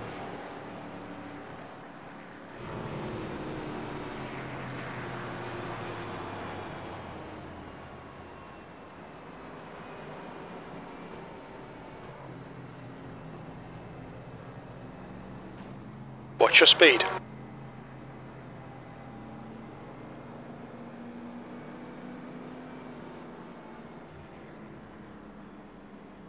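A race car engine drones steadily as the car drives around the track.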